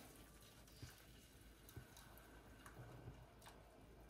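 Liquid pours softly into a pot.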